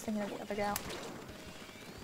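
Ink sprays and splatters in short wet bursts.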